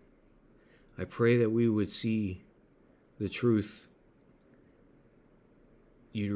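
A middle-aged man speaks slowly and calmly into a close microphone, with long pauses.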